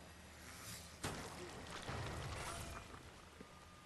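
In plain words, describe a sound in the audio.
A deep explosion booms and rumbles.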